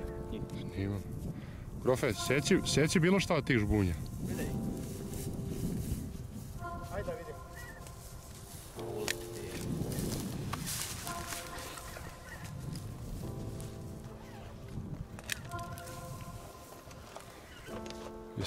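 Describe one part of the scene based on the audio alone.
A flock of geese honks overhead.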